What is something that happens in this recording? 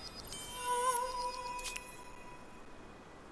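A bright chime rings out as a reward is unlocked.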